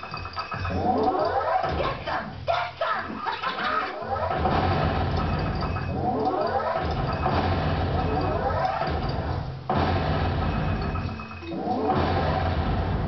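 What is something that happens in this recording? Water splashes against a boat's hull.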